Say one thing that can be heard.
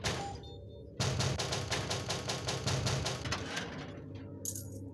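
A heavy metal door rattles and grinds as it slides open.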